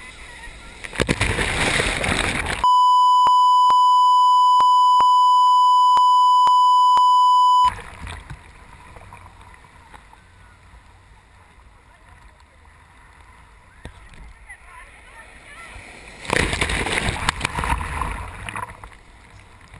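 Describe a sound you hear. Waves crash and splash loudly close by.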